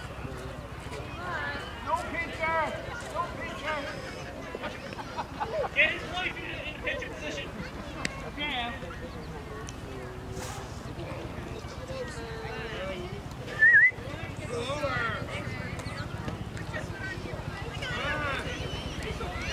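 Children and adults call out and cheer outdoors at a distance.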